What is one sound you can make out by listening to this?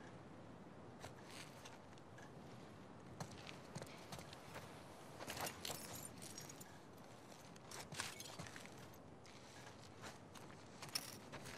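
Footsteps crunch over debris on a wooden floor.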